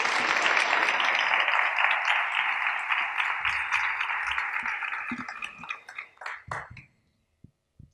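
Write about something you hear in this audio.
An audience applauds in a large, echoing hall, and the applause fades away.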